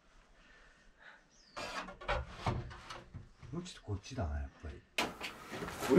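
Metal knocks and clanks as a stove pipe is fitted.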